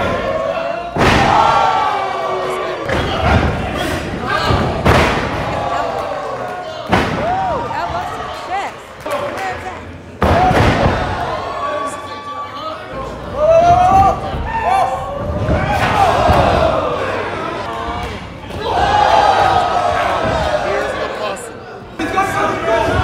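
Bodies slam loudly onto a wrestling ring mat.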